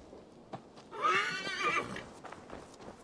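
A horse whinnies close by.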